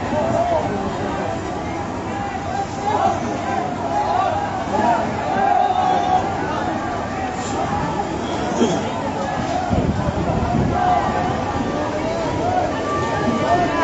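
A crowd of people shout and talk excitedly nearby.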